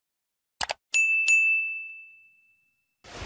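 A small bell chimes.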